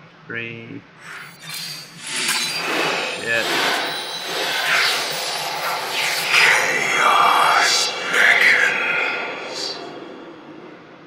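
Magical spell effects whoosh and crackle loudly.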